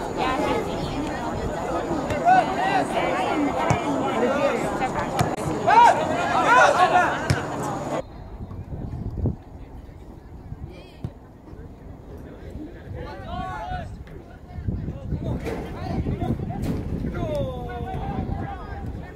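Young men shout and call out across an open outdoor field.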